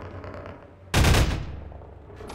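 A gun fires a single loud shot.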